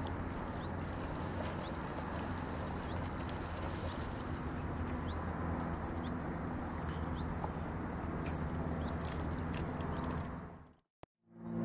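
A river flows and ripples nearby.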